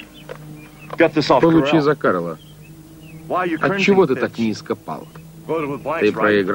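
A man speaks in a gruff, mocking voice close by.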